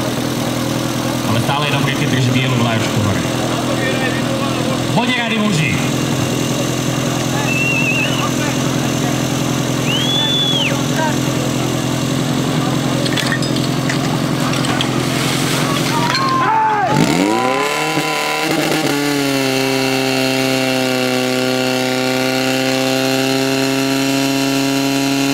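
An engine hums steadily, then revs up sharply and settles into a loud, steady drone.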